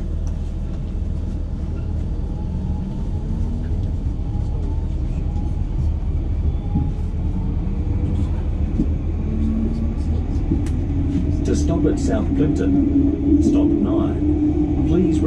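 Train wheels click and rattle over the rails.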